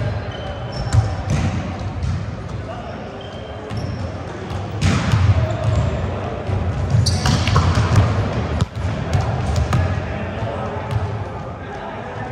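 A volleyball thuds against hands and arms, again and again, in a large echoing hall.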